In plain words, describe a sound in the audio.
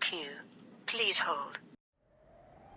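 A recorded woman's voice speaks calmly through a phone.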